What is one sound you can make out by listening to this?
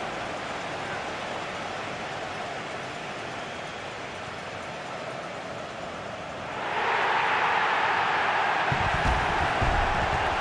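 A large crowd cheers loudly in a stadium and swells louder.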